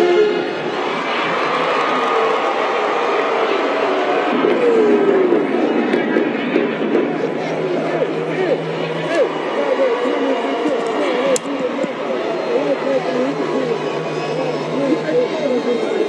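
A large marching band plays brass loudly outdoors.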